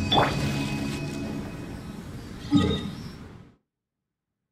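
A bright game chime rings out and slowly fades.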